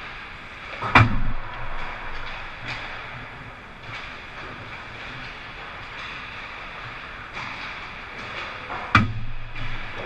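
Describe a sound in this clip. A puck smacks hard against the boards or a stick.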